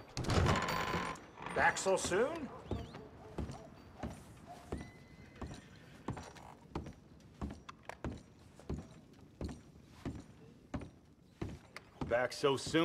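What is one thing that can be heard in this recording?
Footsteps thud steadily on a wooden floor.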